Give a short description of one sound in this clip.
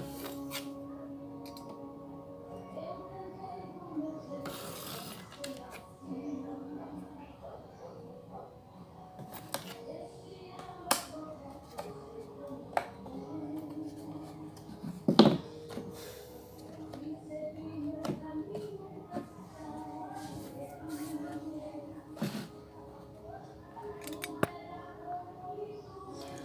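Wooden sticks click and tap against each other as they are handled.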